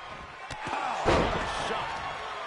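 A wrestler stomps down on an opponent with a thump.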